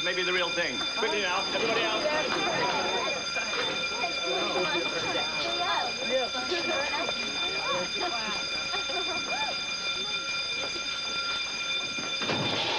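Many young people chatter as they get up and leave.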